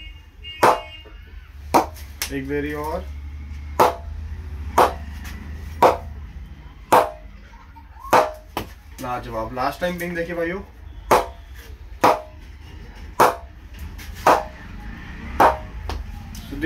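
A ball knocks sharply against a wooden bat again and again.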